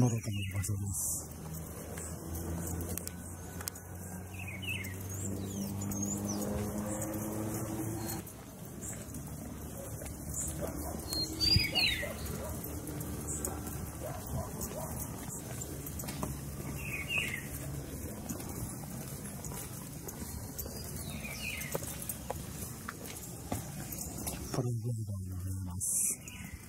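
Footsteps walk steadily on a paved path outdoors.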